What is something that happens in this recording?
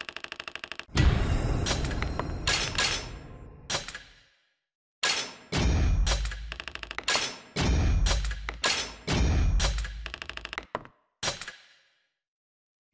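Game chimes and coin jingles ring out as treasure is tallied.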